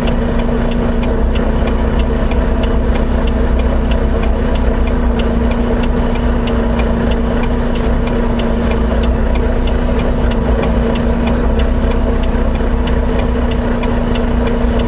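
A truck engine rumbles with a steady low drone.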